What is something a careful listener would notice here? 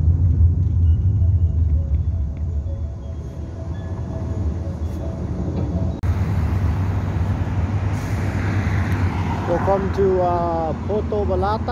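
A vehicle's engine rumbles steadily with road noise while driving.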